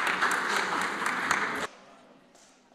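An audience claps loudly in a large echoing hall, then stops suddenly.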